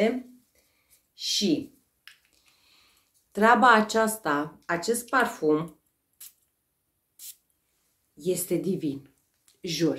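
A young woman talks calmly and close to a microphone, with pauses.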